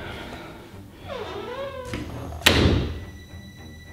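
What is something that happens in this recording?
A door creaks as it is pushed open.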